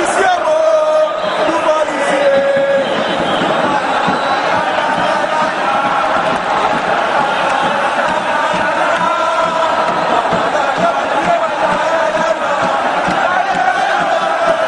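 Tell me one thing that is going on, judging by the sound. A large crowd chants loudly in an echoing stadium.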